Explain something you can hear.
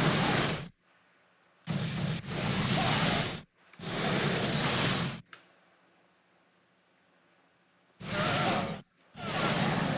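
Magic spells crackle and blast in short bursts.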